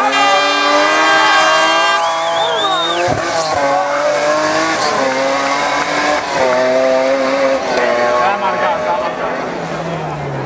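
A BMW E30 rally car revs hard as it accelerates uphill through bends on tarmac.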